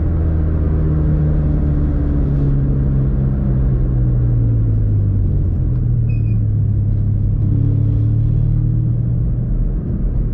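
Tyres roll on an asphalt road with a low rumble.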